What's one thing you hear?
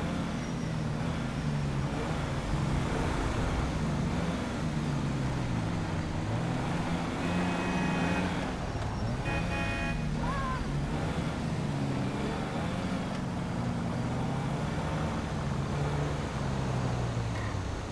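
A truck engine roars and changes pitch as it drives fast.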